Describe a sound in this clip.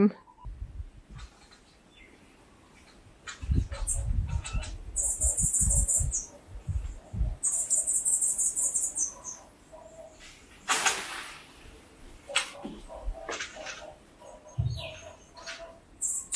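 Leafy branches rustle and shake as a long pole pokes through them.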